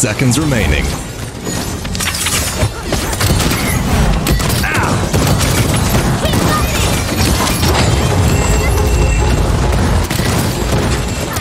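Guns fire rapidly in a video game.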